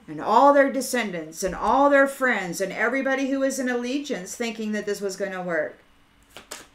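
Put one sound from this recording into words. A middle-aged woman speaks close to a microphone, with animation.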